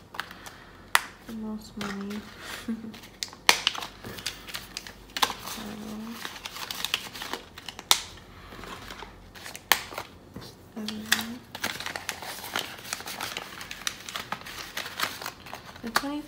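Paper banknotes rustle and crinkle as hands handle them.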